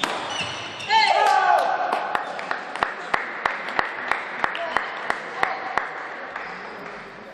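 A crowd claps in a steady rhythm in a large echoing hall.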